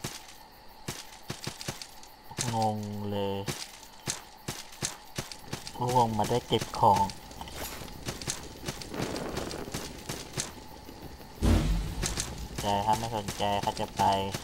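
Footsteps tap quickly on stone.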